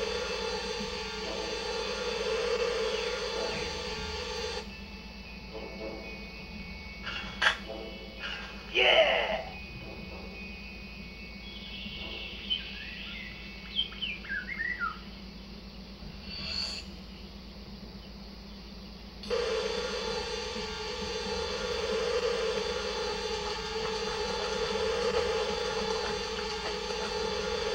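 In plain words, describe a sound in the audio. Video game music plays from a television.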